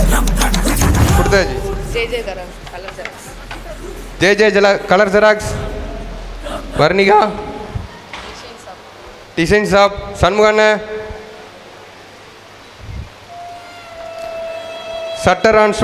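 A young man speaks with animation into a microphone through loudspeakers, in an echoing hall.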